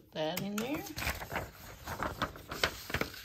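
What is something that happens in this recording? A sheet of paper rustles as it is lifted.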